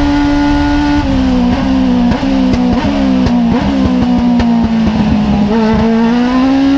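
A small race car's engine blips through downshifts under braking.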